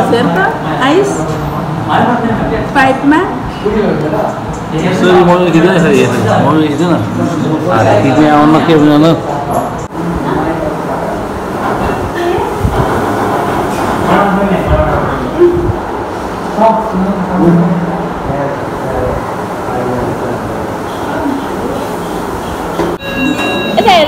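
Several adults talk and chatter close by in a room.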